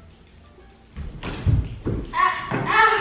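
A body tumbles down wooden stairs with heavy thuds.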